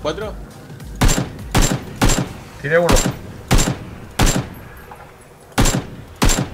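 Loud rifle shots crack one after another, each with a short echo.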